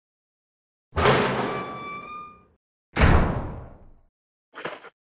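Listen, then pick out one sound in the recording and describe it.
A heavy door creaks open with a loud rumble.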